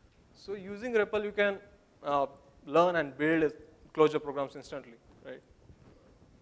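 A young man speaks into a microphone in a hall with a slight echo.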